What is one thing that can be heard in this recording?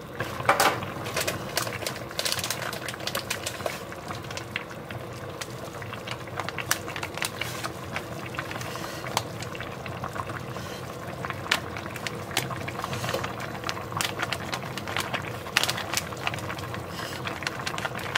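Soup bubbles and crackles as it simmers.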